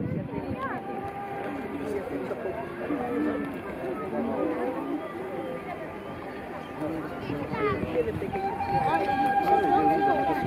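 A large crowd of men and women chatters and calls out in the open air.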